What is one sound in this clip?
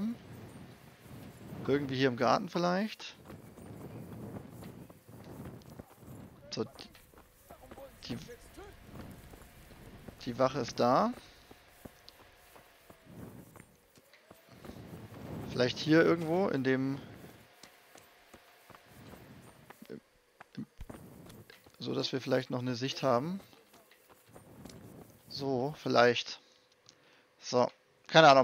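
Footsteps walk over packed earth and stone.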